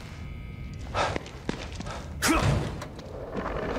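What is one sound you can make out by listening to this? A door opens with a thud.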